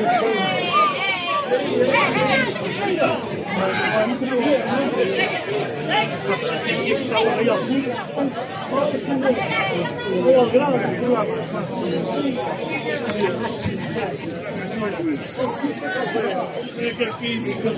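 A crowd of men and women talks and calls out nearby, outdoors.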